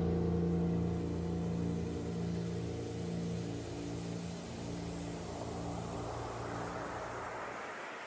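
A piano plays slow sustained chords.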